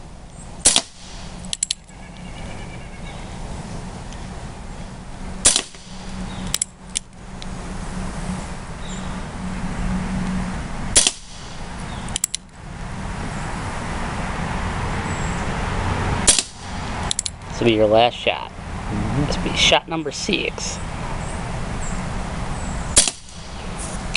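A revolver fires loud single shots outdoors, each followed by a short echo.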